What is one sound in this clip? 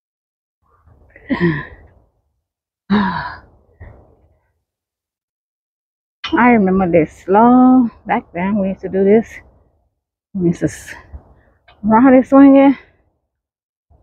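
A woman speaks close to the microphone in short bursts, with animation.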